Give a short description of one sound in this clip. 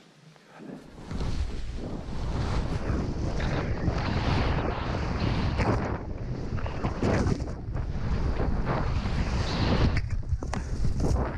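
Wind roars loudly past.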